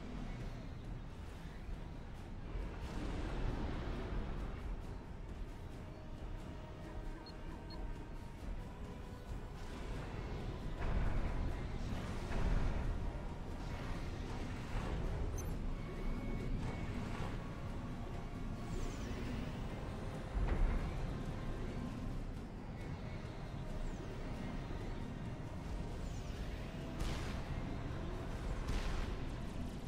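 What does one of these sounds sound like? Explosions and gunfire from a battle rumble and crack throughout.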